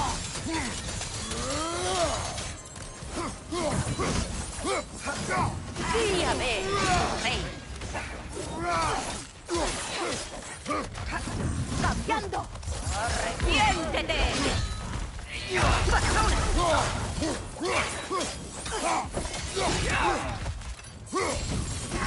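Fire whooshes from swinging chained blades.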